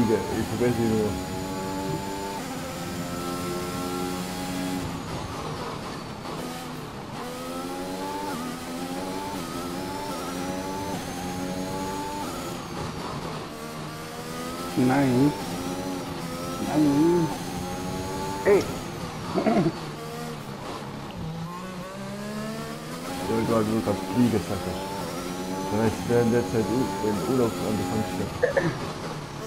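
A racing car engine screams at high revs, climbing in pitch through each gear and dropping sharply at every shift.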